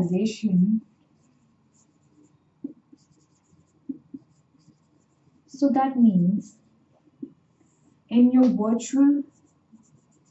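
A young woman speaks calmly, as if teaching.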